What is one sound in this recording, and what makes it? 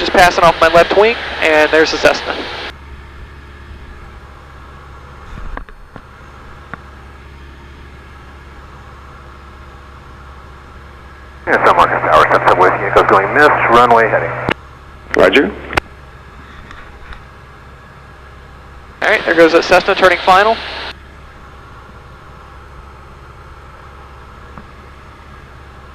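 A small propeller plane's engine drones steadily from inside the cabin.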